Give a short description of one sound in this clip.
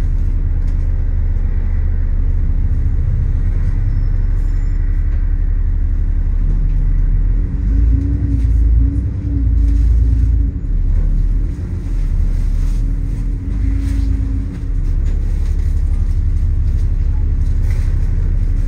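A bus engine rumbles low and steady from close by.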